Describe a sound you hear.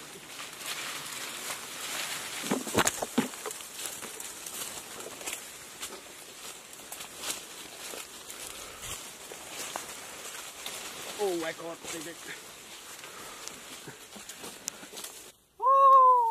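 Leaves and branches rustle as people push through dense brush.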